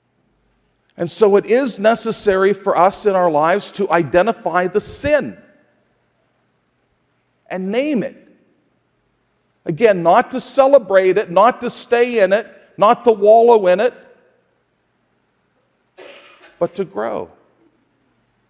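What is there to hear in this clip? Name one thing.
A man speaks calmly through a microphone in an echoing hall, with long pauses.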